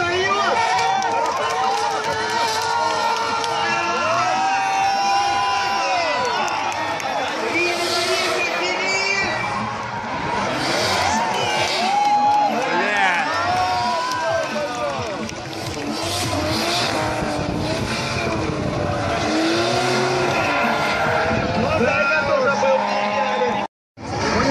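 Car engines rev loudly, rising and falling in pitch.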